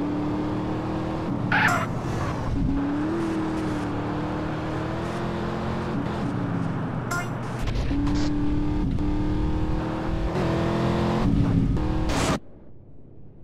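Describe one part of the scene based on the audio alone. A video game car engine roars at full throttle.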